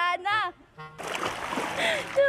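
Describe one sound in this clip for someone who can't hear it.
Water splashes as a man falls in.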